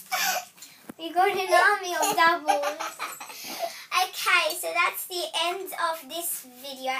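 A young girl talks cheerfully, close by.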